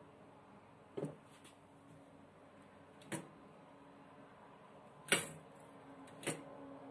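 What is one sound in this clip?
Metal parts clank and knock together as they are handled.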